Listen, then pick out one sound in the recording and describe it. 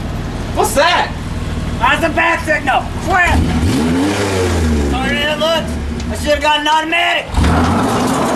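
A young man shouts excitedly close by.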